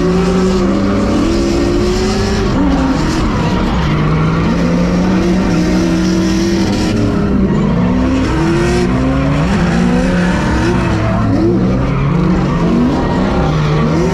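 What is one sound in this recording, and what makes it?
Car engines roar and rev up and down loudly close by.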